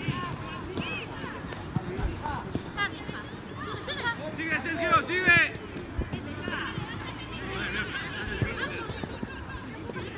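Children shout to each other outdoors.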